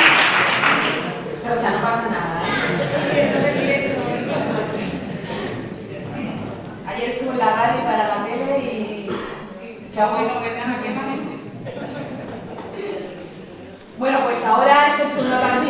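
A young woman speaks calmly through a microphone in an echoing hall.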